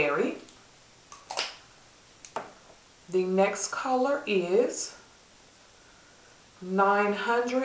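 A woman talks calmly and close to a microphone, in short phrases with pauses.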